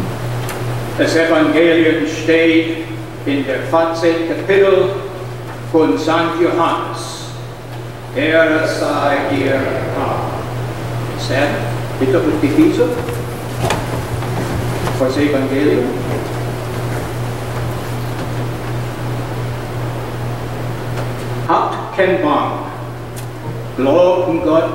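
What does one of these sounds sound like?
A man reads out through a loudspeaker in a large echoing hall.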